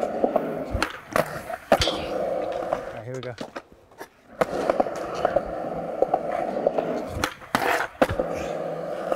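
A skateboard clacks sharply against concrete and a ledge.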